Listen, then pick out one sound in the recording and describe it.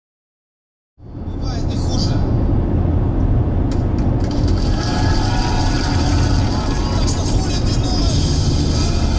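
Tyres hum on a road as a car drives.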